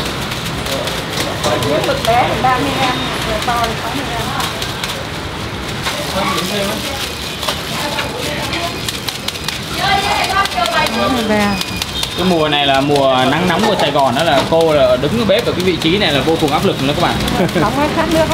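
Plastic gloves rustle and crinkle as hands squeeze soft dough.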